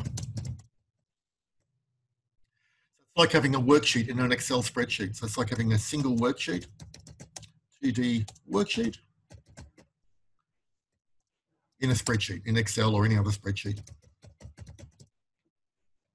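A man speaks calmly and close to a microphone, pausing now and then.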